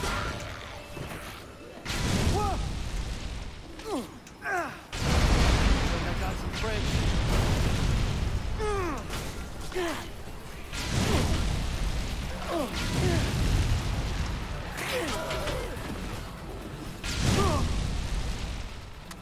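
Zombies groan and moan in a crowd.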